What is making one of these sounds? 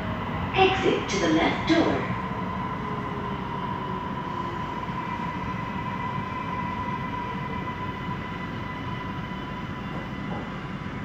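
A high electric whine drones inside a train carriage.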